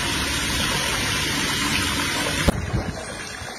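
Water pours and splashes into a tank.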